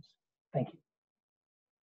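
A man speaks a brief word over an online call.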